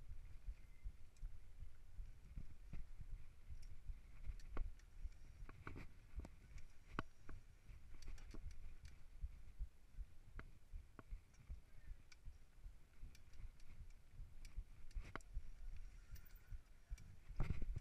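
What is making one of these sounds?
Bicycle tyres roll over a bumpy dirt trail.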